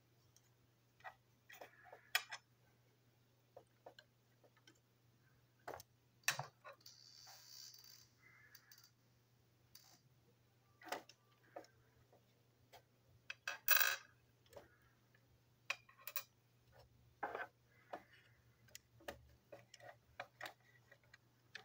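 Small plastic toy train parts click and snap as they are taken apart and fitted together.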